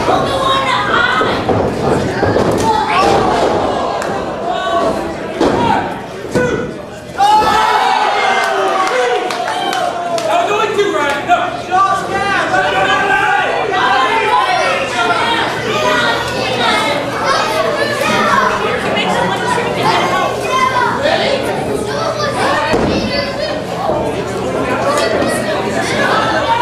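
A crowd chatters and cheers in a large echoing hall.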